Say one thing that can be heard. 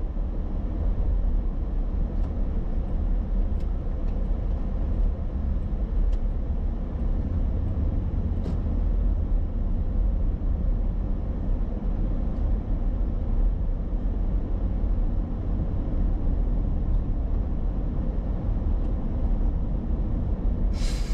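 Tyres rumble on the pavement.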